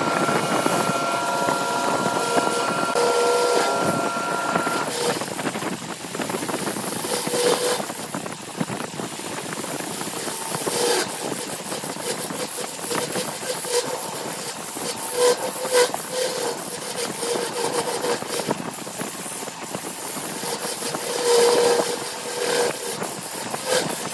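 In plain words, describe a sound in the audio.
A lathe chisel scrapes and cuts into spinning wood, throwing shavings.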